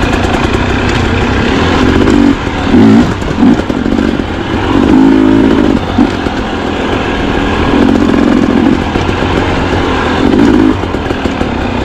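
Tyres crunch over dry dirt and twigs.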